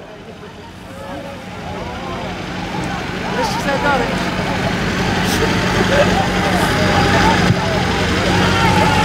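Young men talk and laugh close by.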